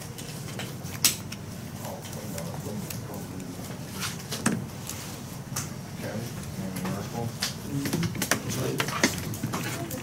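Cards tap and slap softly on a table.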